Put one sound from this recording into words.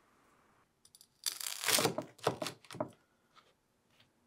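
A knife crunches through toasted bread.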